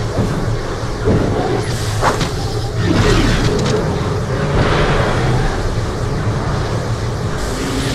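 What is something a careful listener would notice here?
A laser gun fires in buzzing bursts.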